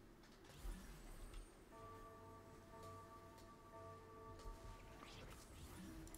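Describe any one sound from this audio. A magical portal opens with a shimmering hum.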